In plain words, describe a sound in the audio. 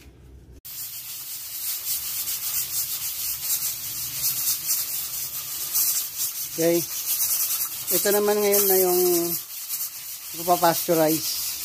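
A pressure cooker hisses loudly with escaping steam.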